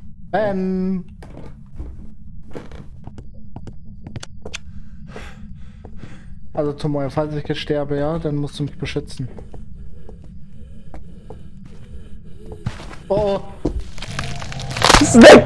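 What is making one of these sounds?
Footsteps tread across a wooden floor.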